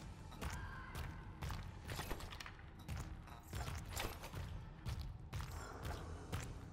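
Heavy metallic footsteps clank at a steady walking pace.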